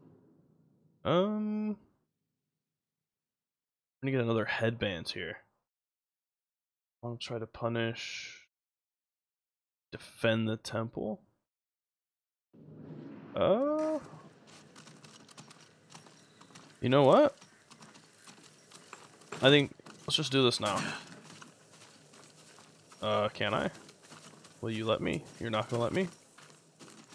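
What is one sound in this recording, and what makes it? A young man talks with animation into a microphone, in short bursts.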